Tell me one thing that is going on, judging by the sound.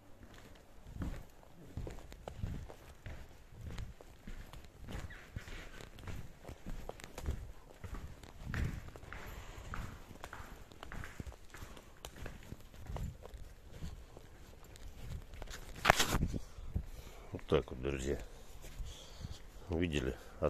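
Footsteps thud steadily while walking.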